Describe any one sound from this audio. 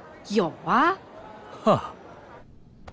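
A young woman speaks brightly and with animation, close by.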